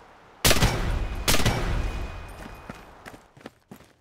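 Gunshots boom loudly and echo away.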